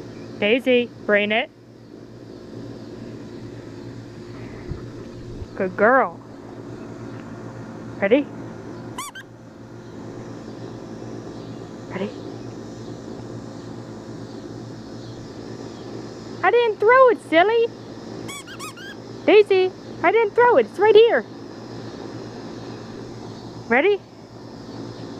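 A young dog barks sharply in short bursts, close by.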